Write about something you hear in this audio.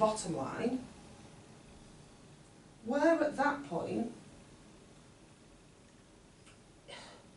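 A middle-aged man speaks calmly in a room, with pauses between phrases.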